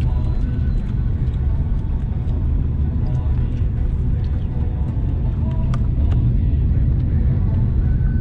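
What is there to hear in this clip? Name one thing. A car engine hums steadily inside the car as it drives along.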